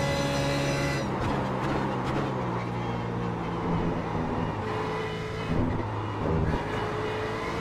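A race car engine blips sharply as gears shift down.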